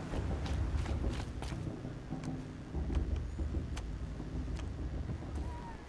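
Footsteps thud on a wooden bridge.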